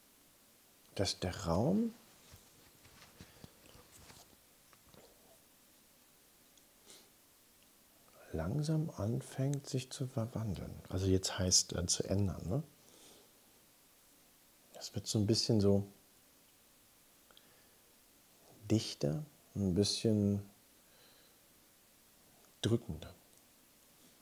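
A middle-aged man speaks in short bursts into a close microphone.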